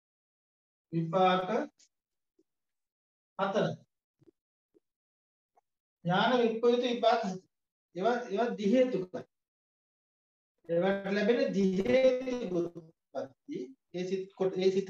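A man speaks calmly, pausing often.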